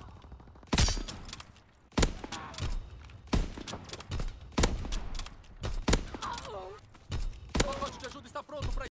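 A rifle bolt clacks as it is worked back and forth.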